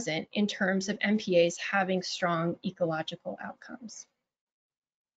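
A woman speaks calmly through a microphone on an online call.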